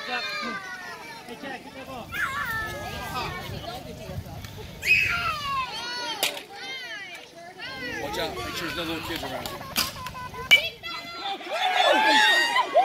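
Young children shout and call out across an open field.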